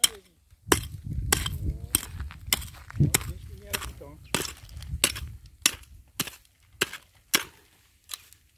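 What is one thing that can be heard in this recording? A hoe chops repeatedly into hard soil.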